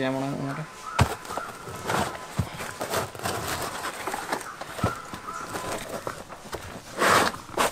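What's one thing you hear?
A knife cuts and scrapes through tough rubber.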